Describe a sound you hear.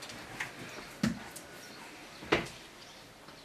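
A heavy book thuds shut on a table.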